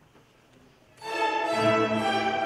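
A string orchestra begins playing a loud, full chord in a large, echoing hall.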